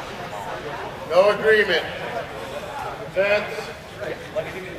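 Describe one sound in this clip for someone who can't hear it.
A man calls out in a large hall.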